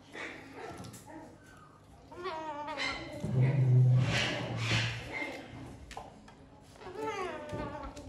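A fox gnaws and crunches on a corn cob.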